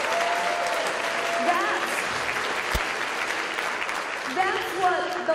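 A large crowd applauds and cheers in a big hall.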